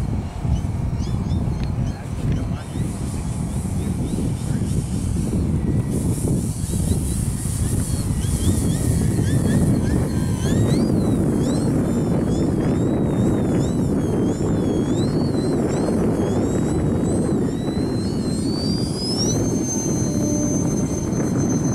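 A model plane's motor whines overhead, rising and falling in pitch as the plane loops and turns.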